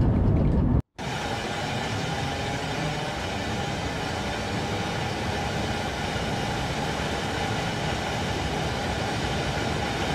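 A train rolls steadily past on the rails.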